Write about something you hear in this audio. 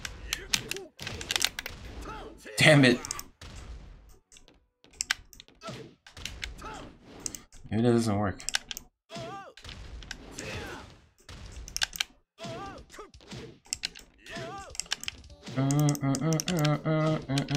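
Punches and kicks land with sharp, loud thuds in a fighting game.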